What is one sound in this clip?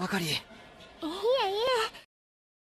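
A young girl speaks sweetly.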